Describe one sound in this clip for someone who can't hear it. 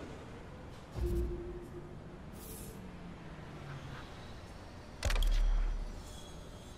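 Short game menu tones sound as options are selected and confirmed.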